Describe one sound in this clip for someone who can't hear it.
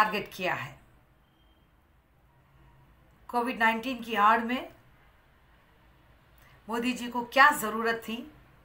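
A woman speaks calmly and earnestly, close to a microphone, in short bursts with pauses.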